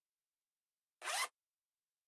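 Clothes rustle as they are handled and folded.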